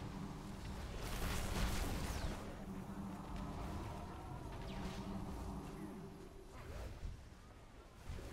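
Game spells whoosh and crackle in bursts.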